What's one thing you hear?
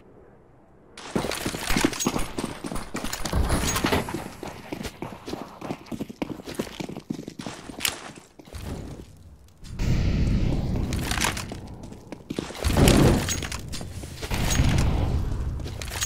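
Footsteps run quickly over hard pavement.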